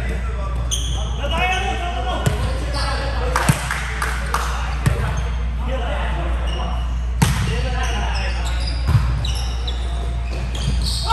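Young men call out and talk loudly across the court.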